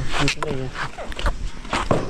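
Footsteps scuff on dry dirt.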